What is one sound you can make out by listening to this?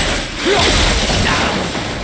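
A fiery blast booms.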